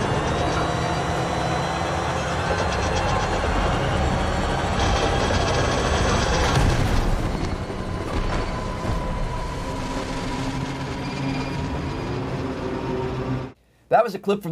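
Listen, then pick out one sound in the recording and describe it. Heavy engines roar and rumble.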